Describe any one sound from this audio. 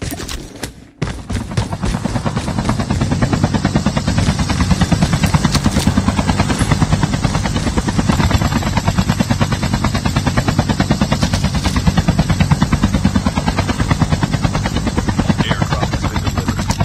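A helicopter engine drones with a fast, steady thumping of rotor blades.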